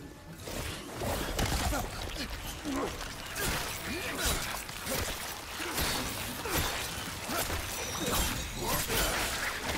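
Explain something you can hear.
A creature shrieks and snarls close by.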